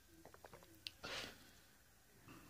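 A man exhales after drinking.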